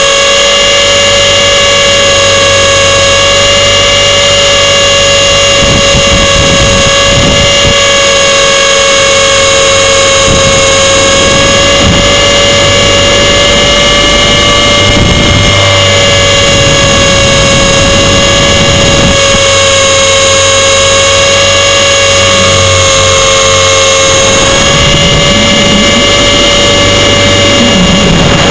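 Small electric motors whine steadily at a high pitch, close by.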